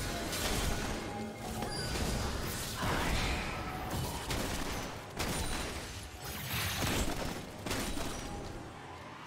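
Loud magical blasts and whooshes burst out in quick succession during a fight.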